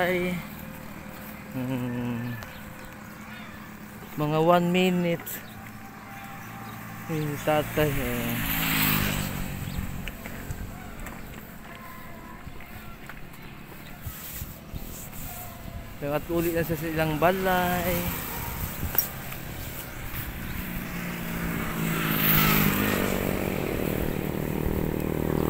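A wooden cart creaks and rumbles as it rolls along a road.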